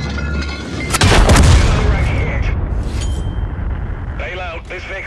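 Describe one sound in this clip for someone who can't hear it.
A tank explodes with a heavy roaring blast.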